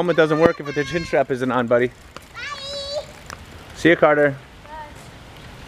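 Bicycle tyres hiss over a wet road.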